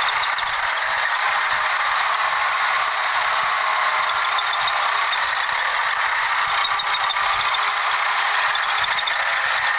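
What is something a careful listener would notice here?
Tractor wheels churn and splash through wet mud.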